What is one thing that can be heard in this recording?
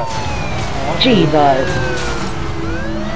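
A car crashes into another car with a loud crunch.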